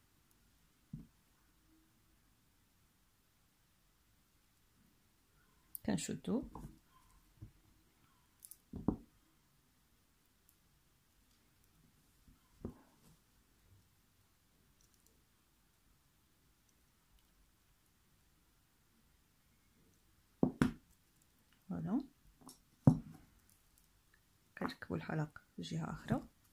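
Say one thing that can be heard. Beads rattle and clack softly as they are handled.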